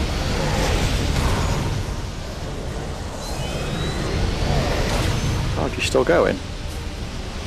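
Energy beams crackle and hum steadily.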